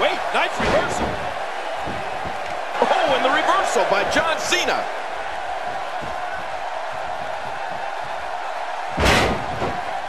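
A body slams hard onto a wrestling mat.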